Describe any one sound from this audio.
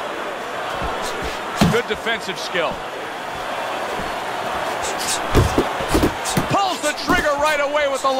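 A large crowd murmurs and cheers steadily in a big arena.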